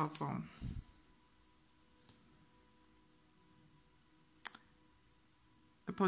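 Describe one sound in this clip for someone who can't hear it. A card is slid and set down softly on a cloth.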